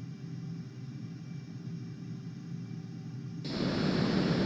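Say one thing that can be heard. A jet engine hums low and steady, as if heard from inside.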